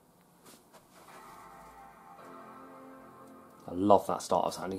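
A laptop plays its startup chime.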